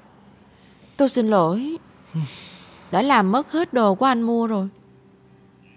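A woman speaks with animation, close by.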